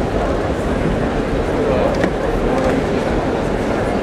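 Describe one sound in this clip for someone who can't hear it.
Footsteps tap on a wooden floor.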